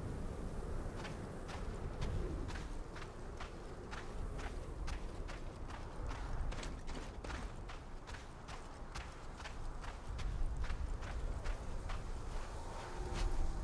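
Footsteps crunch on dry gravel at a steady walking pace.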